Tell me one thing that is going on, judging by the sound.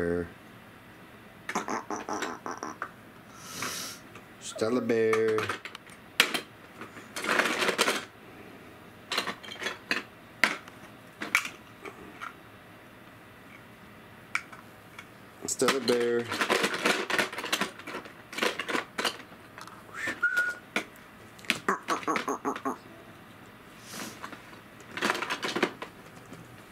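Plastic toy blocks clatter and knock together close by.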